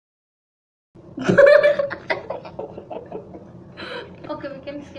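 A girl talks with animation, close by.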